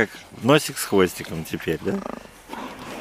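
Bear cubs whine and squeal up close.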